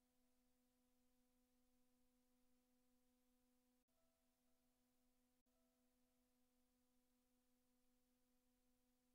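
A steady electronic drone of layered tones plays, cutting out briefly twice.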